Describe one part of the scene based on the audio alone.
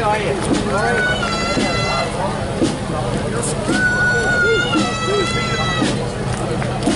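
A bugle blows long held notes.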